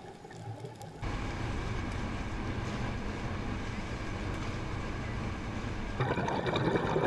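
Wind and water rush steadily past a moving boat.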